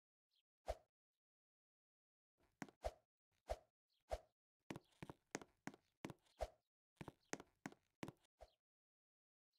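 Quick footsteps patter on a hard floor.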